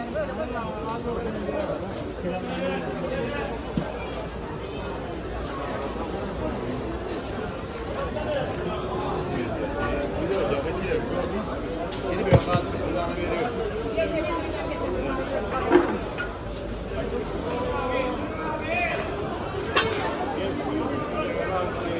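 A crowd chatters in a busy outdoor market.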